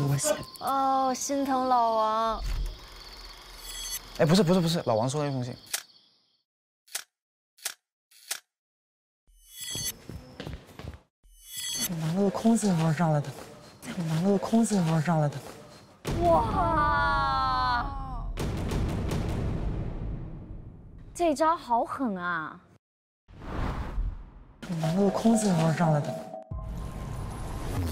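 A young woman speaks casually nearby.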